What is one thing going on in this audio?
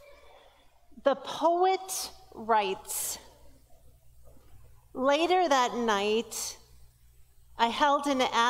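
A woman sings through a microphone in a large, echoing hall.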